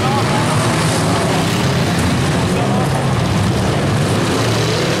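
Loud car engines roar and rev throughout.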